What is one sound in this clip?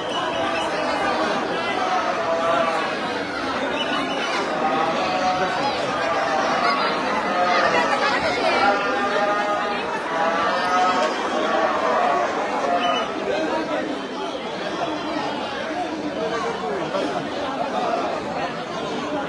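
A large crowd of men chants and shouts loudly all around.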